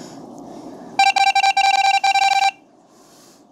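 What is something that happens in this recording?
A video game plays a rapid run of high electronic beeps.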